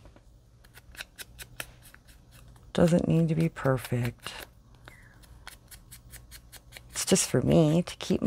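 An ink pad taps lightly against paper.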